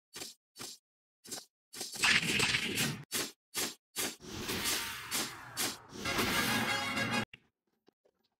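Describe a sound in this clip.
Sword slashes whoosh and strike in quick bursts.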